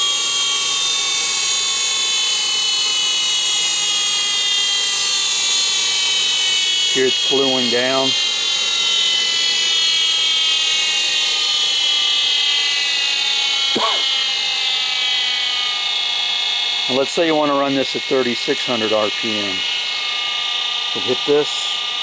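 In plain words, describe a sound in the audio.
An electric motor whines steadily, its pitch slowly falling.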